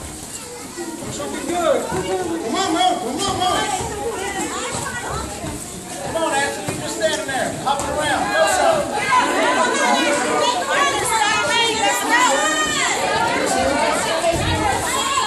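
A crowd of children and adults shouts and cheers loudly in an echoing hall.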